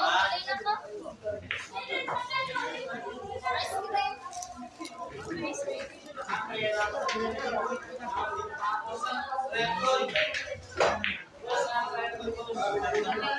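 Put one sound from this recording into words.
Several young men talk and call out around the room.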